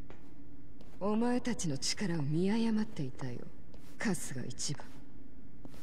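A woman speaks coolly and mockingly, close by.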